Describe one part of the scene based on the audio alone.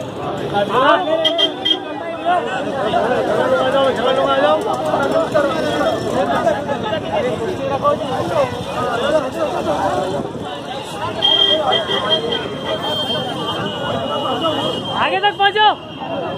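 A crowd of men shout and talk excitedly close by.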